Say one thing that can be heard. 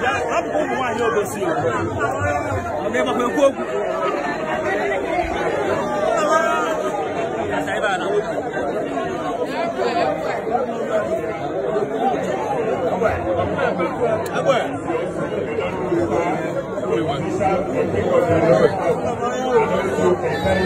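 A crowd of men and women talk and shout loudly nearby.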